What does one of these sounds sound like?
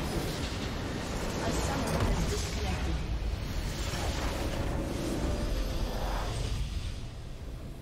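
Game spell effects crackle and boom in a loud battle.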